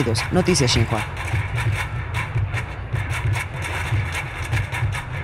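Drummers pound rapid, booming beats on metal barrels and buckets outdoors.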